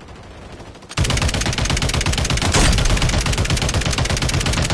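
A machine gun fires rapid bursts up close.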